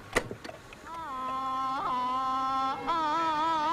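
A cassette deck starts playing a warbling tune.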